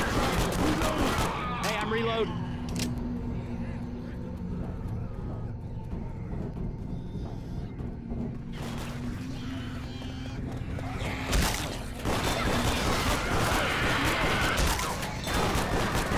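Zombies growl and snarl nearby.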